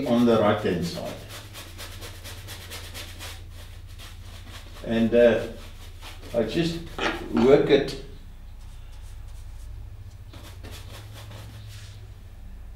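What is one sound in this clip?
A brush scrubs and swishes across canvas.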